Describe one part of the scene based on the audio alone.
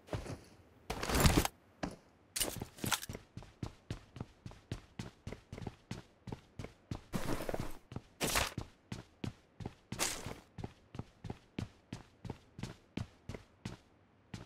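Quick footsteps thud steadily across a wooden floor.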